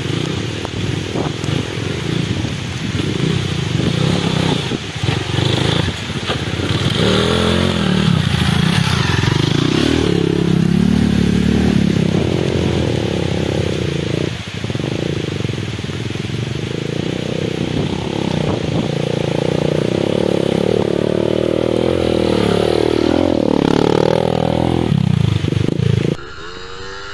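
A dirt bike engine revs up and down nearby, rising and falling in pitch.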